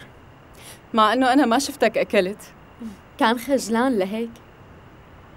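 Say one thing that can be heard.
A woman speaks warmly nearby.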